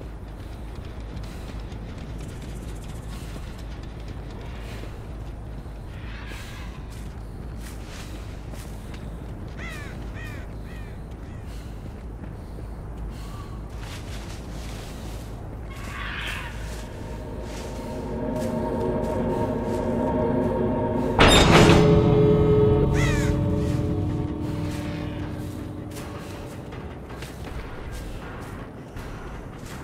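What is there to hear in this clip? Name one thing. Footsteps crunch steadily on dirt.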